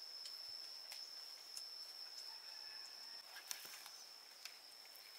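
Leaves rustle and crinkle as they are handled.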